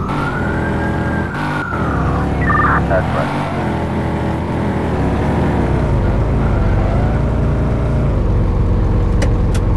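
A car engine revs, rising and falling in pitch.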